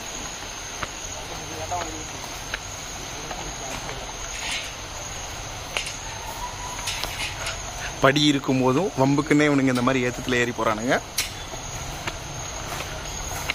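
Sandals slap on steps as a person walks down.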